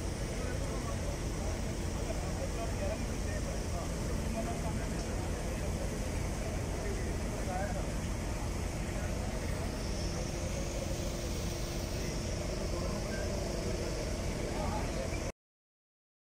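A backhoe engine idles with a low rumble.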